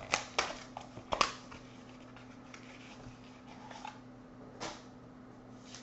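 Foil wrapping crinkles and tears as a card pack is opened.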